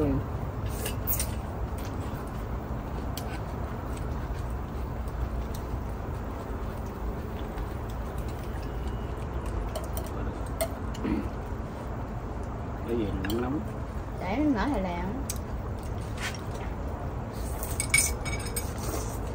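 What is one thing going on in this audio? Chopsticks and spoons clink against bowls.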